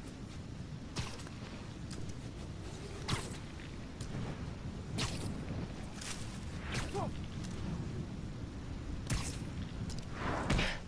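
Sharp whooshing snaps ring out again and again.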